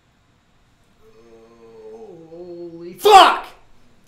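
A young man groans in a long drawn-out voice close to a microphone.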